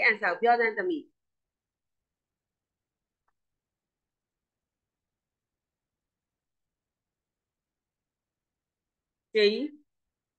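A woman speaks calmly through an online call microphone, in short phrases with long pauses.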